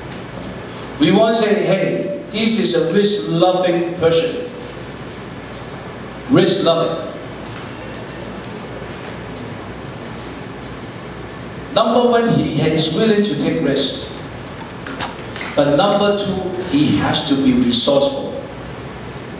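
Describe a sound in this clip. A man speaks through a microphone and loudspeakers in a large room, explaining with animation.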